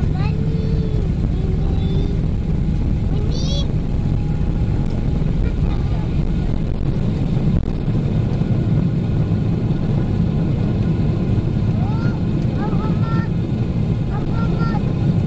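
Turbofan jet engines roar at takeoff thrust, heard from inside the cabin.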